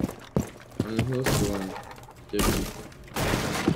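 Glass shatters loudly as a window is smashed through.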